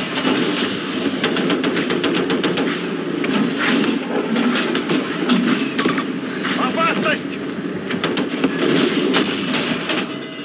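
Gunfire crackles and pops in rapid bursts.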